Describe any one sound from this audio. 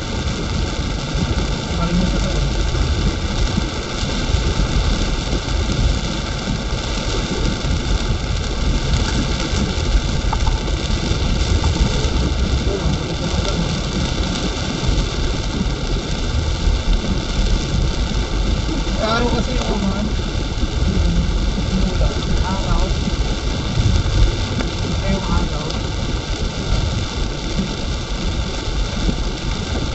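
Heavy rain drums steadily on a car's windscreen.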